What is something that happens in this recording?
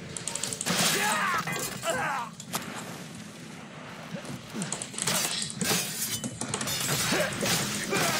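Game characters shout and grunt in a fight.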